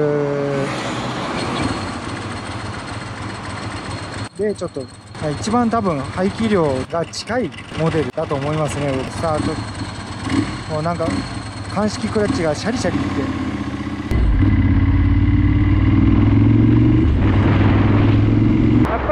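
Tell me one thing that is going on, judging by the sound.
A motorcycle engine hums close by, then grows louder and roars as the bike speeds up.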